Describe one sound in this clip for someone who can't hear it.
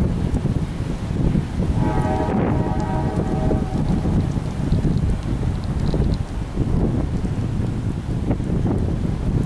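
Strong wind gusts roar steadily outdoors.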